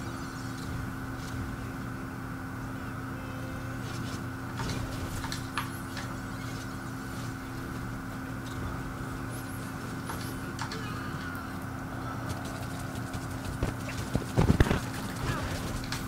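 A hovering vehicle's engine hums steadily.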